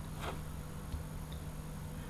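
A marker pen squeaks faintly as it writes on a glass jar.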